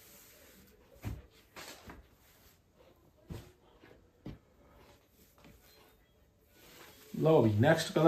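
Fabric rustles and swishes as it is lifted and laid down by hand.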